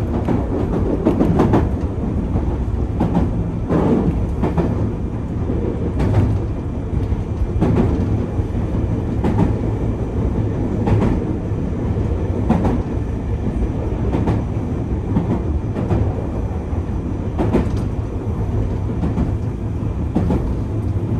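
Train wheels click and clatter over rail joints.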